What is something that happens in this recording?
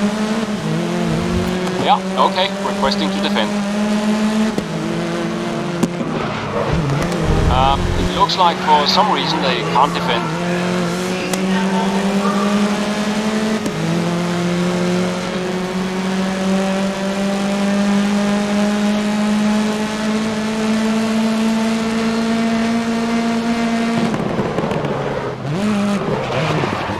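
A racing car engine roars at high revs, climbing in pitch and dropping as it shifts gears.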